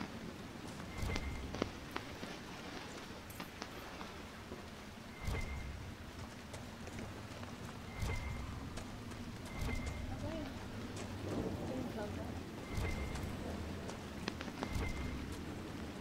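Heavy footsteps thud slowly on a dirt path.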